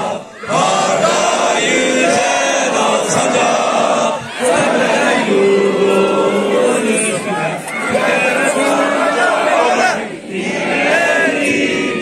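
A large crowd of men chants loudly in unison outdoors.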